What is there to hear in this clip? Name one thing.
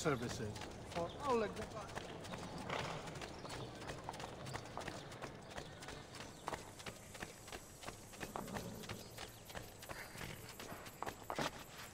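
Footsteps run quickly over stone paving.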